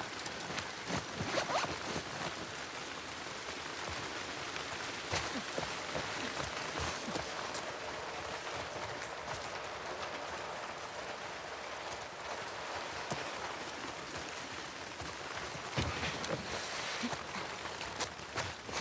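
Footsteps thud softly on the ground.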